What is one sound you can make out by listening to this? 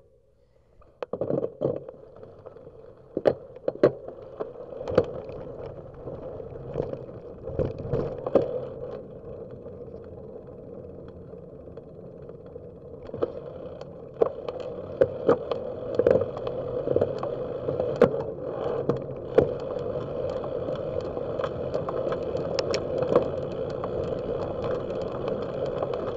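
Small wheels roll steadily over rough pavement, clacking over cracks.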